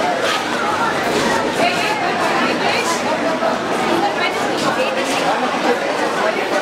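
A crowd of women and men chatter close by at once.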